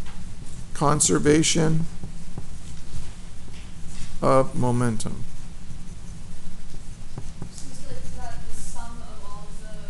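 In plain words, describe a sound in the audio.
A pen scratches on paper as it writes.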